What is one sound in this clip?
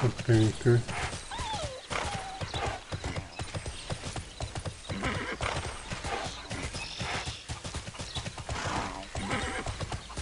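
Hooves clop steadily on the ground.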